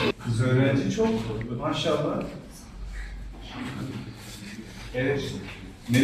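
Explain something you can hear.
Children murmur quietly in a classroom.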